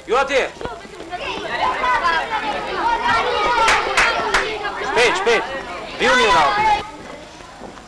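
A crowd of boys murmurs and calls out.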